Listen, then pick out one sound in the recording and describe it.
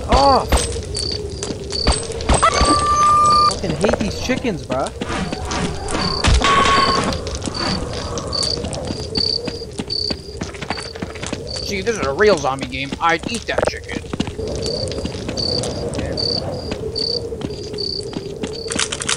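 Footsteps tread at a steady walking pace on hard ground.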